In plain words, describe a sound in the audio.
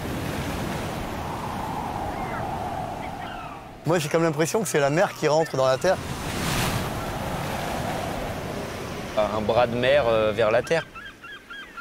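Stormy waves crash and roar against a sea wall.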